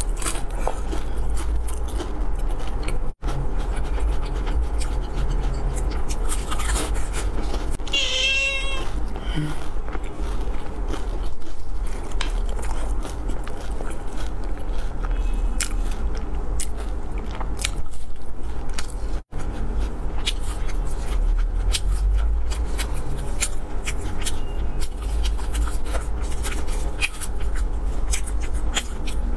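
A young woman chews crunchy fried food close to a microphone.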